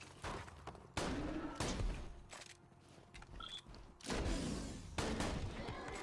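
Gunshots blast in quick bursts.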